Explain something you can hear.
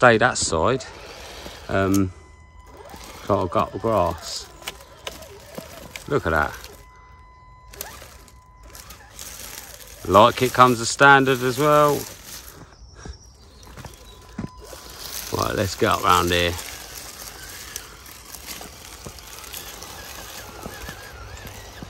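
A small electric motor whirs as a toy truck crawls along.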